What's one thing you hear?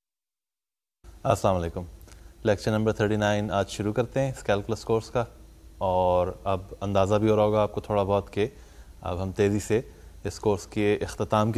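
A man speaks calmly and clearly into a microphone, close by.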